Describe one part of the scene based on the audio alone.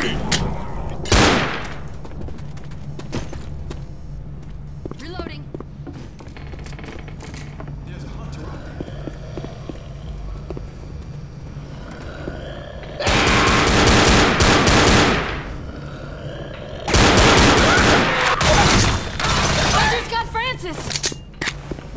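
Pistol shots crack loudly, one after another.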